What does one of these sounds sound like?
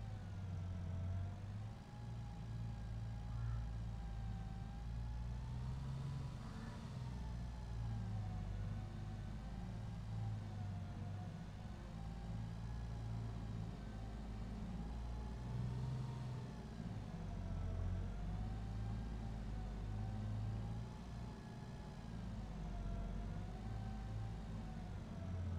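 A tractor engine rumbles low and steady, with a wavering whine.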